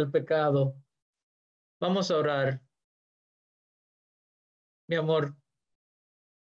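A middle-aged man speaks calmly in short phrases close by.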